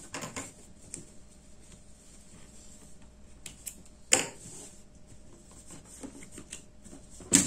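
Hands rustle and shift cotton fabric.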